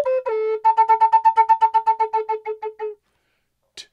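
A wooden flute plays a held note with a fluttering vibrato.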